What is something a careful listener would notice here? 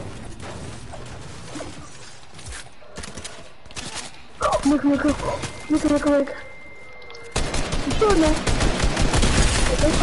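Gunshots crack in rapid bursts in a video game.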